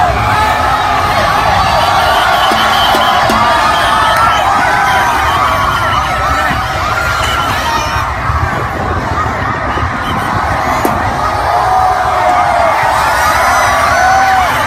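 A large crowd cheers and shouts loudly all around.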